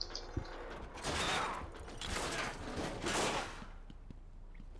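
A metal vent grate rattles and scrapes as it is pried open.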